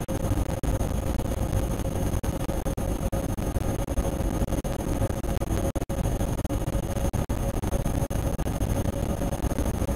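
An electric train rumbles at speed through a tunnel.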